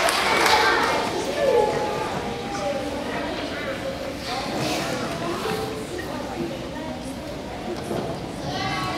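Young children chatter and call out among themselves.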